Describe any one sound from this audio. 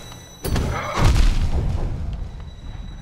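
A creature bursts apart with a heavy splatter.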